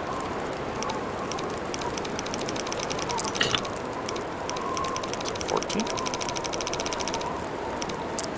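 A combination dial clicks as it turns.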